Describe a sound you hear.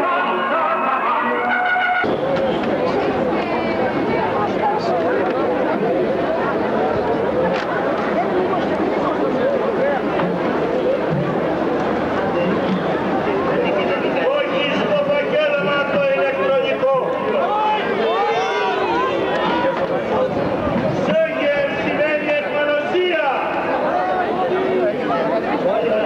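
A large crowd chants and shouts loudly outdoors.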